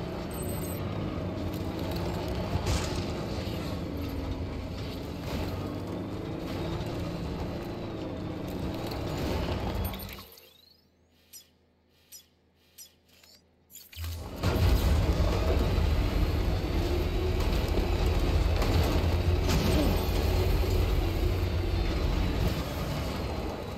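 A vehicle's engine rumbles steadily as it drives over rough, rocky ground.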